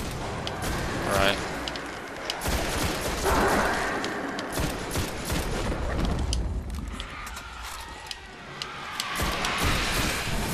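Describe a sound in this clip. A rifle fires rapid shots.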